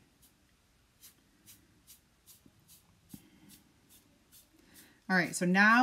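A brush dabs softly on paper.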